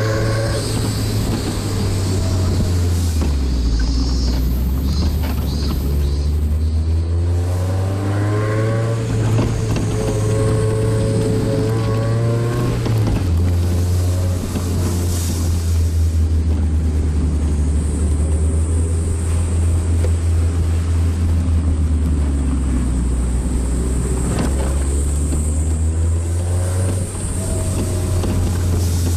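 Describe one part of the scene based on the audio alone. Wind rushes past an open-top car.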